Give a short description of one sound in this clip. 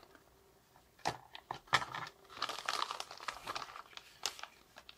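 A zip seal on a plastic pouch rips open.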